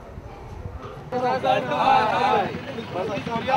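A crowd of men shout loudly outdoors.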